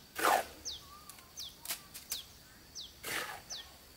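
A trowel scrapes wet mortar in a metal wheelbarrow.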